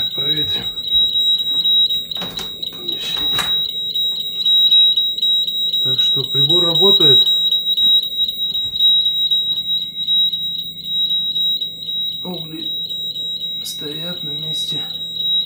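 A gas alarm beeps rapidly and steadily with a high shrill tone.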